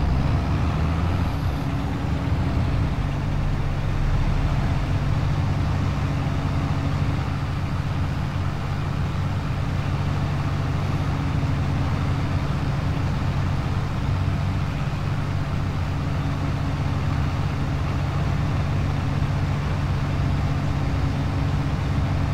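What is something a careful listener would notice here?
A tractor engine hums steadily from inside the cab.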